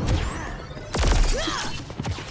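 A sniper rifle fires a sharp shot.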